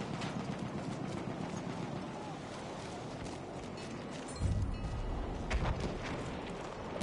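Footsteps crunch over rubble at a run.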